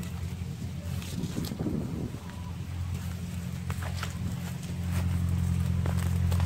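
Footsteps rustle softly through grass and dry leaves.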